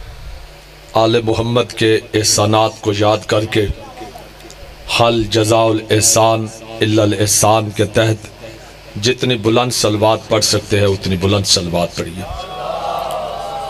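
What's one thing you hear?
A young man recites loudly into a microphone, heard through loudspeakers.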